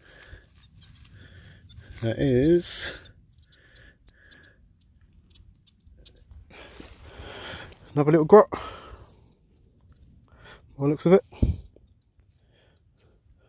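Gloved fingers rub and crumble dry soil.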